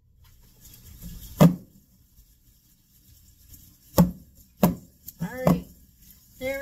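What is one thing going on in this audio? A metal baking pan knocks on a stone counter.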